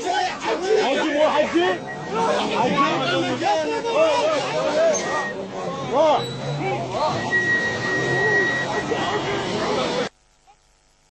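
Several men shout agitatedly, close by and outdoors.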